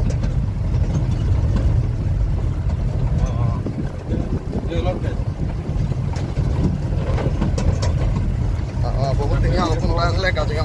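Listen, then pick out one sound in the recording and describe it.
A vehicle engine rumbles steadily as it drives over a rough track.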